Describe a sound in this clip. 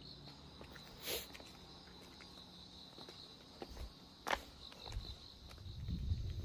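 Sandals slap and scuff on stone steps.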